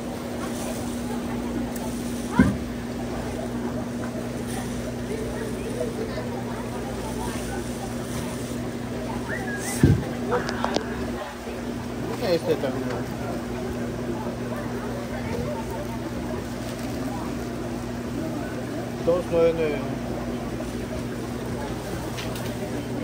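A refrigeration unit hums steadily.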